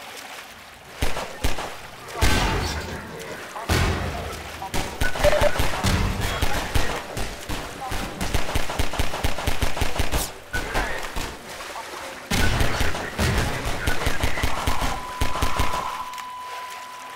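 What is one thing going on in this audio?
Pistol shots crack in quick bursts, echoing off walls.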